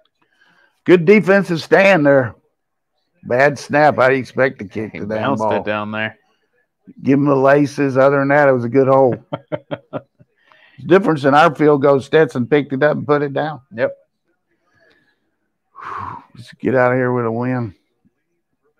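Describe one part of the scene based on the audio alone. An elderly man talks calmly and with animation, close to a microphone.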